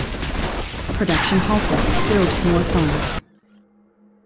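Explosions boom in a game battle.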